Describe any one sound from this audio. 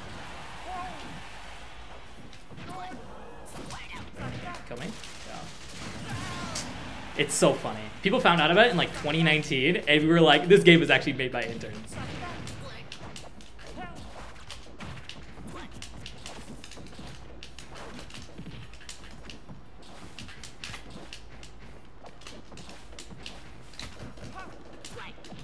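Video game hits and effects crack and whoosh in quick bursts.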